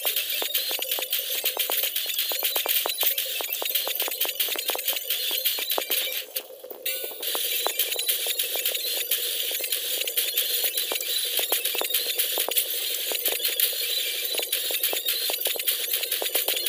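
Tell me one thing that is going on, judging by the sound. Bright chimes ring quickly as coins are collected.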